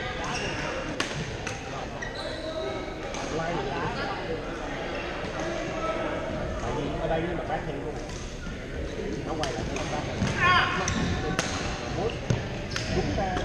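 Paddles strike a plastic ball with sharp pops.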